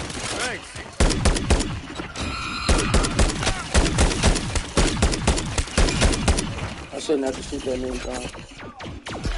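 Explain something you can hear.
Rapid gunfire crackles in a game.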